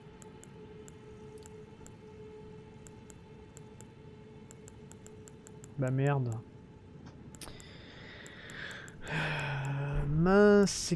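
Soft game menu clicks tick over and over at an uneven pace.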